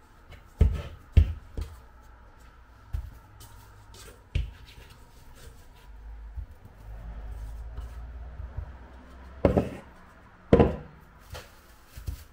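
A spoon scrapes and knocks against a metal bowl.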